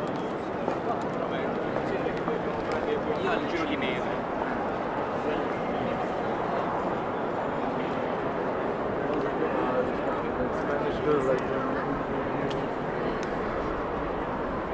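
A crowd murmurs and chatters, echoing in a large hall.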